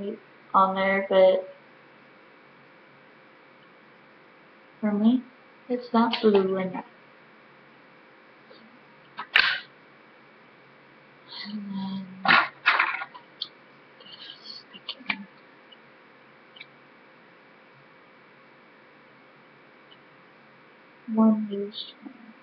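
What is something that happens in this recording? A young woman talks casually and close by, in short bursts with long pauses.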